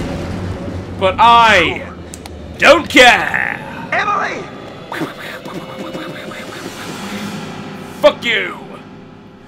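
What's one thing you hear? A young man shouts out loudly, calling for someone.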